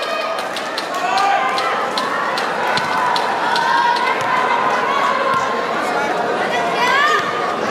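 Hands slap together in quick high-fives.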